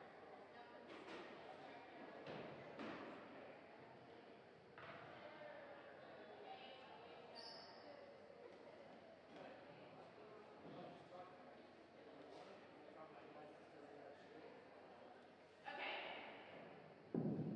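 Volleyball players shout and call to each other.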